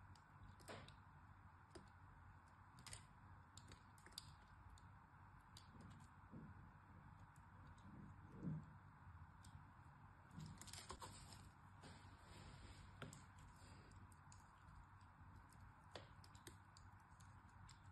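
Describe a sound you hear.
A small blade cuts and crunches through soft soap with crisp clicks.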